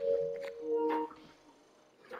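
Short electronic chimes ring out.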